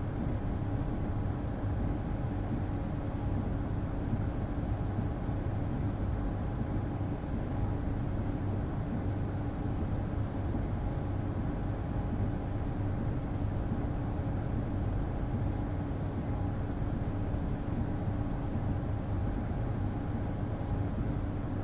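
Windscreen wipers sweep back and forth across the glass.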